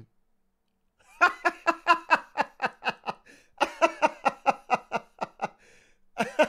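A young man laughs loudly and hard into a microphone.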